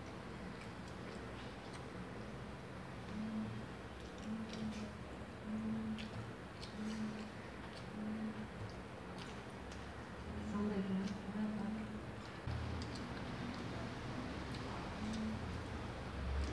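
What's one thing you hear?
A boy chews food noisily with his mouth open, smacking his lips.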